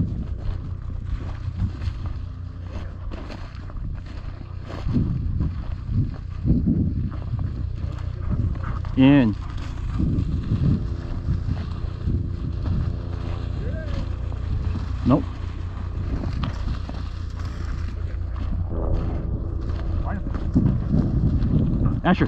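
Footsteps crunch through dry grass and snow.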